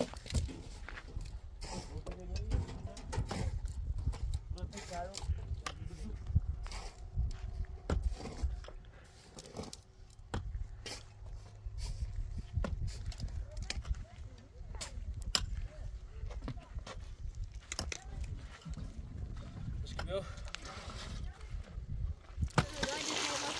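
Shovels scrape and thud into dry soil outdoors.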